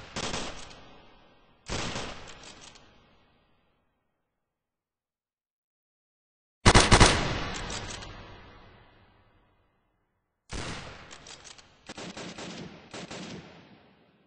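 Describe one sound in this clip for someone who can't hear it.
Gunfire rattles in short, sharp bursts that echo away.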